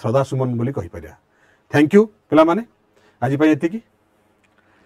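A man speaks into a microphone close by.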